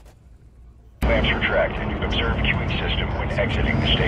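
A spaceship engine hums and roars loudly.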